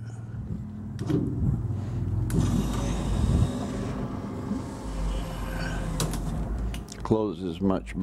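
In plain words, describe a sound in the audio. A window motor whirs as the mechanism runs.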